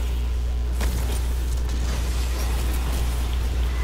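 Electric energy crackles and bursts in a video game.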